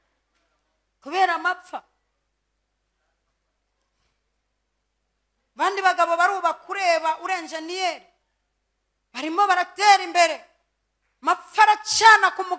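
A woman speaks with animation into a microphone, in short bursts with pauses.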